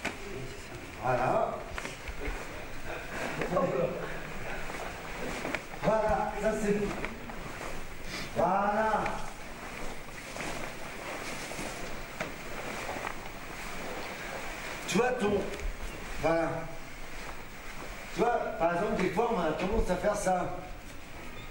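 A man calls out loudly in short bursts in a large echoing hall.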